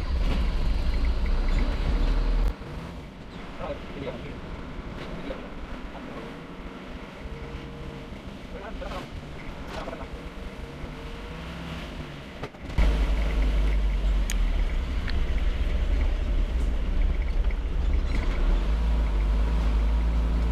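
A motorbike engine hums steadily while riding.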